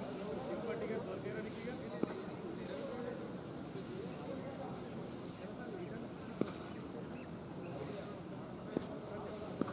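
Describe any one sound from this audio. Young men talk casually at a distance outdoors.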